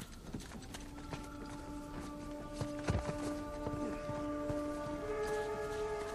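Footsteps patter on stone and grass outdoors.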